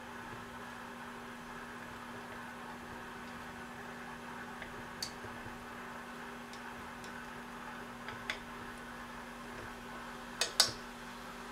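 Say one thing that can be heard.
Chopsticks clink against a metal pan while food is stirred.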